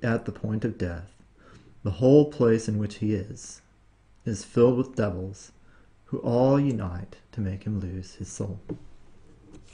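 A young man reads aloud calmly, close to a microphone.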